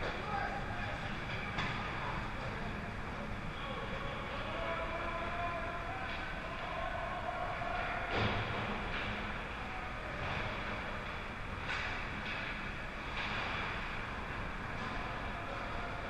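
Skate blades scrape and hiss across ice in a large echoing rink.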